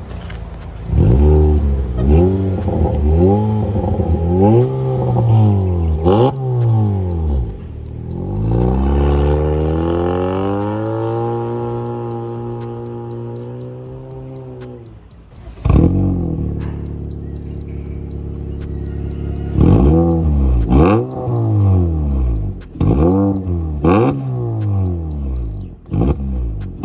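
A car engine revs hard in bursts through a loud exhaust, close by.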